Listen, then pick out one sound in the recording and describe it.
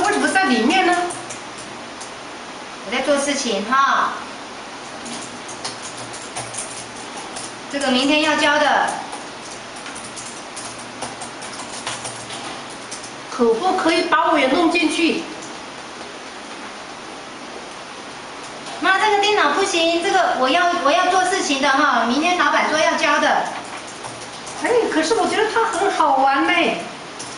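An older woman speaks in a complaining tone, close by.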